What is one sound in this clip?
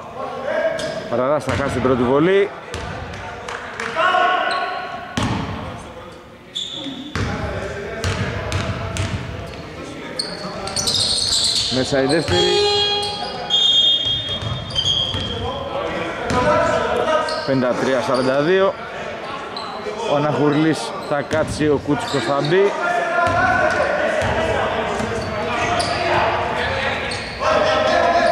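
A basketball bounces on a hardwood court in a large echoing hall.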